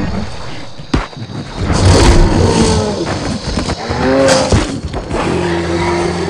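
A large beast roars loudly.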